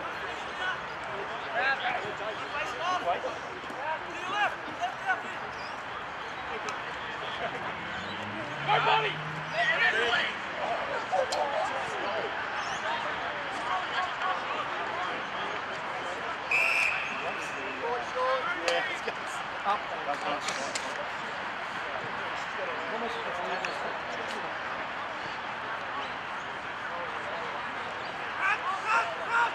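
Young men shout and call to each other on an open field, heard from a distance.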